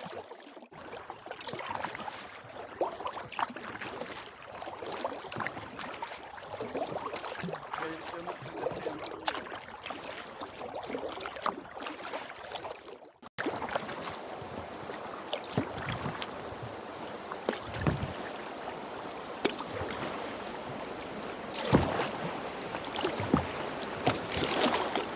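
Water splashes and laps against the hull of a small boat, close by.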